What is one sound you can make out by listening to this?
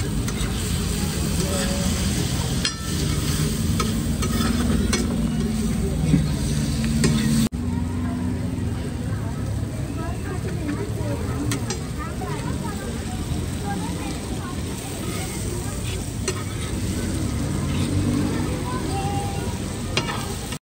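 Food sizzles on a hot griddle.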